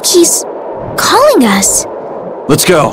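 A young woman speaks softly in a voice-over.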